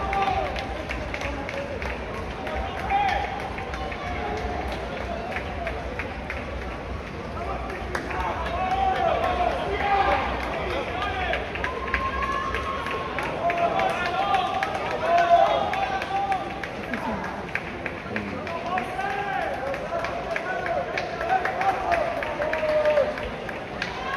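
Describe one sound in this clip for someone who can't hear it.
Many runners' feet patter on the pavement.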